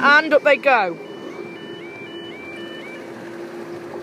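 A level crossing alarm sounds in a repeating two-tone pattern.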